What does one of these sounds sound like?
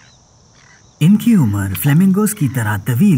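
A frog croaks loudly and repeatedly, close by.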